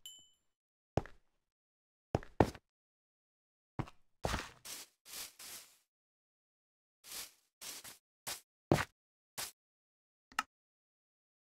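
Footsteps thud softly on grass.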